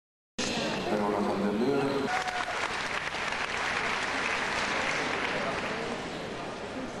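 A crowd applauds and cheers loudly, then dies down.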